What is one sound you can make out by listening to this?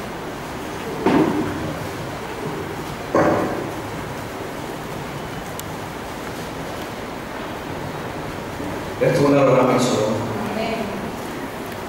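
A man speaks short phrases through a microphone, with pauses between them.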